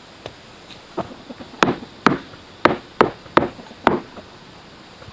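A hammer knocks sharply on a wall several times.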